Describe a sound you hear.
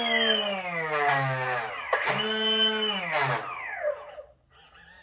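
A small electric motor whirs and winds down.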